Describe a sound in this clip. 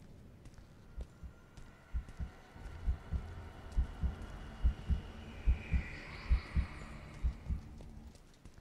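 Heavy footsteps thud quickly on stone.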